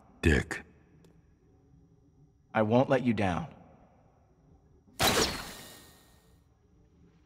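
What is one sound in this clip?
A younger man speaks tensely.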